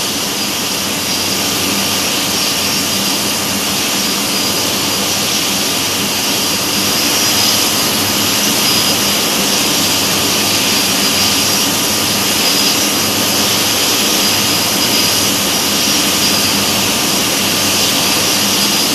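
Jet engines roar steadily with a loud rushing hiss.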